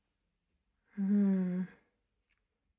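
A middle-aged woman murmurs briefly close by.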